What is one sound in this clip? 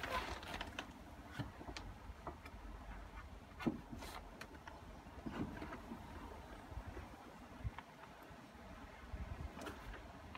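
Wooden boards clatter and scrape against the ground.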